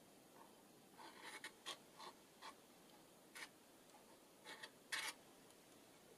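A glue pen taps and scrapes on paper.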